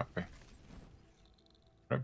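A burst of flame crackles and roars.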